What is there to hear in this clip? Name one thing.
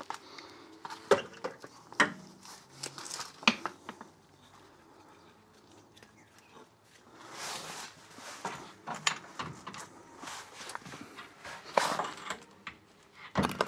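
Metal parts clink and click.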